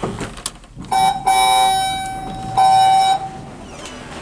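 An elevator chime dings twice.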